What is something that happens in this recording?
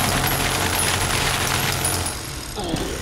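Gunfire bursts rapidly and loudly.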